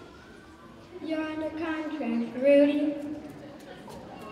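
A young boy speaks clearly into a microphone.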